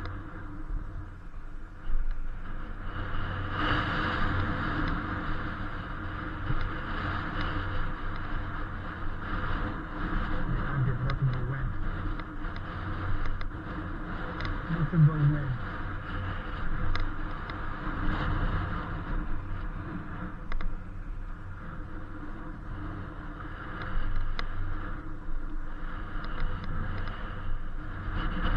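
Wind rushes and buffets steadily outdoors.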